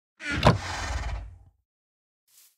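A chest lid closes with a wooden thud.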